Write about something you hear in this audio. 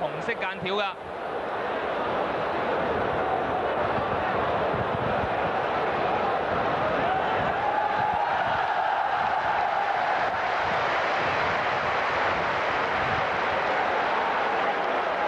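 A large crowd roars and cheers steadily.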